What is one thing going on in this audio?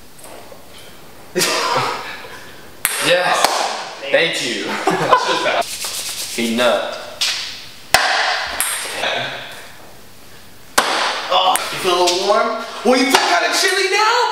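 A ping pong ball bounces on a table.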